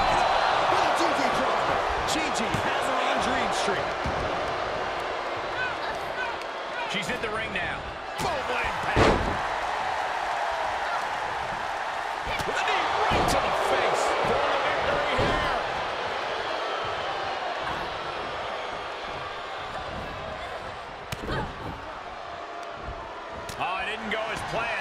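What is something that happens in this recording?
Bodies thud and slam onto a wrestling mat.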